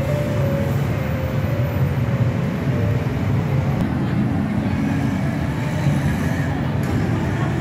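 City traffic rumbles steadily below.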